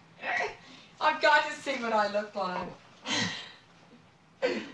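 An elderly woman speaks in a thin voice.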